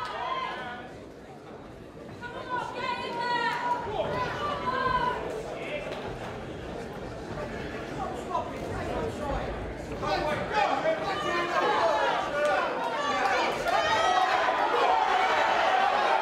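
A crowd of men and women shouts and cheers.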